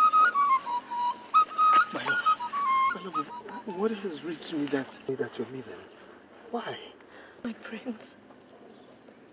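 A man speaks with agitation outdoors.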